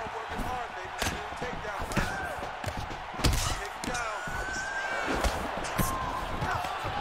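Punches thud against bodies in quick blows.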